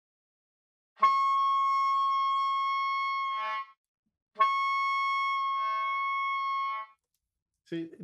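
A saxophone plays two long, steady held notes.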